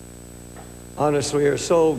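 An elderly man speaks slowly and earnestly into a microphone.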